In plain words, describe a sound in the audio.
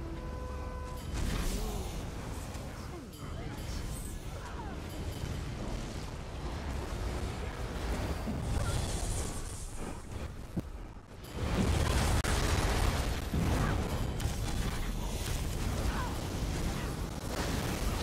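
Magic spells crackle and boom in a fantasy battle.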